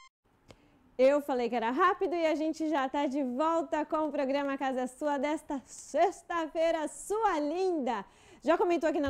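A young woman speaks clearly and with animation into a microphone.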